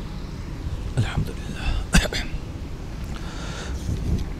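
A man speaks briefly and calmly close to a microphone.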